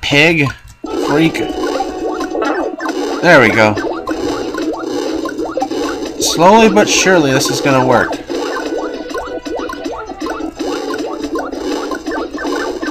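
Upbeat retro video game music plays with a bouncy melody.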